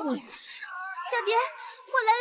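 A young woman speaks softly and anxiously.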